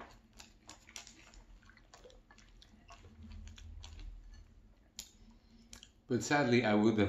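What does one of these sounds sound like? A young man chews crunchy cereal close to a microphone.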